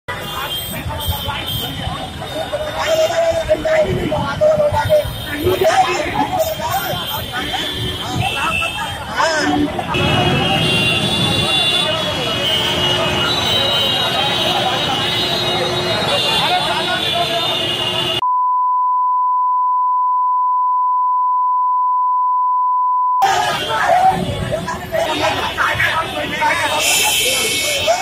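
A crowd of men shouts and clamours close by.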